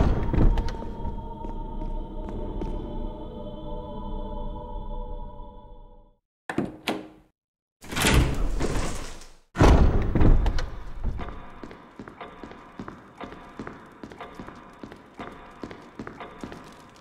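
Footsteps tap on a hard floor in a hall with an echo.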